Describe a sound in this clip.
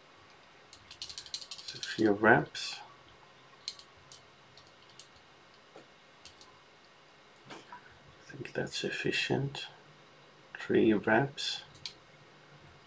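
A man speaks calmly and briefly, close by.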